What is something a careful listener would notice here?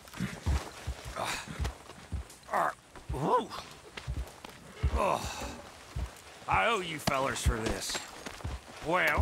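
A man speaks gratefully in a rough voice.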